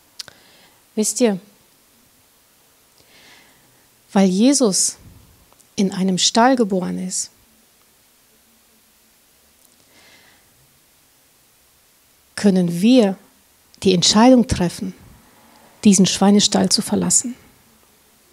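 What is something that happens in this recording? A woman speaks into a microphone in short, emotional phrases with long pauses, heard through a loudspeaker.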